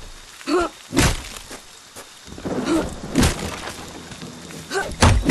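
Footsteps run over leaves and twigs.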